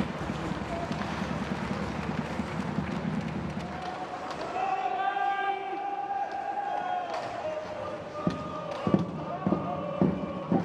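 Hockey sticks clack against the puck and the boards.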